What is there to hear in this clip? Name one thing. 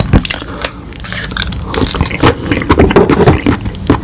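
A plastic spoon scrapes and taps against a plastic cup.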